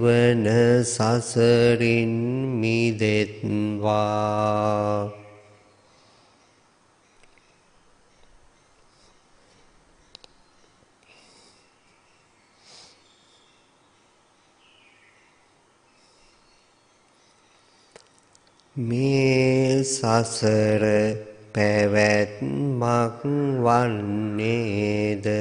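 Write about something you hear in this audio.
A middle-aged man speaks calmly and slowly into a microphone, with long pauses.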